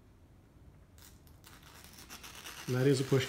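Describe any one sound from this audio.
A knife blade scrapes lightly.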